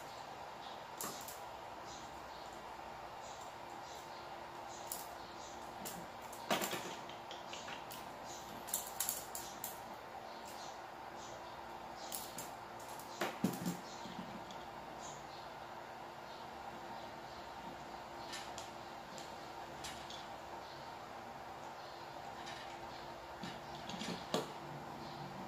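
Pliers click and snip at wires.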